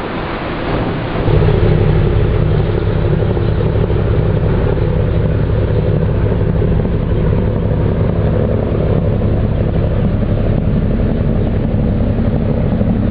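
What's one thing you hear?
Water rushes past a moving boat's hull.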